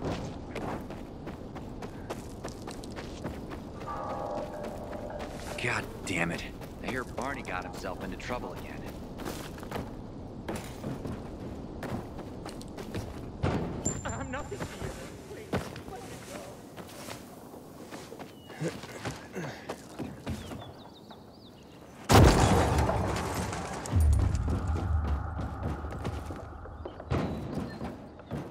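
Footsteps run quickly over hard ground and grass.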